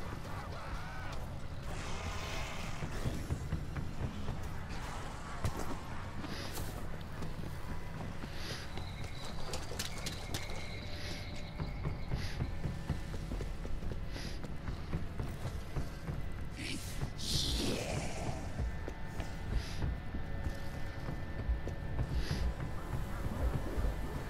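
Footsteps crunch over snow and gravel, then over hard floors.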